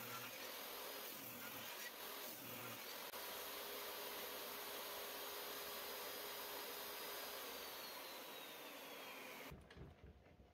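A table saw whirs loudly, then winds down.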